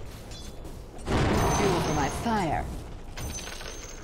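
A fiery blast whooshes and crackles.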